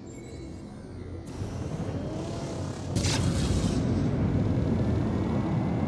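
A spaceship engine roars low and grows louder.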